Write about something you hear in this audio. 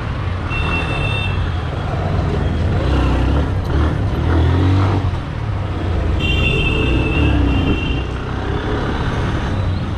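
Traffic drones along a busy street.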